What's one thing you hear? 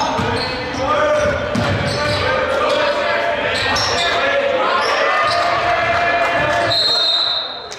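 Young men shout and call out to each other in an echoing gym.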